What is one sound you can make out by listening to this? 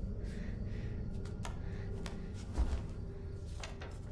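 Fabric rustles and swishes.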